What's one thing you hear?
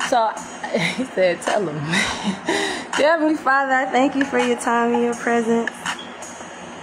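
A woman laughs loudly.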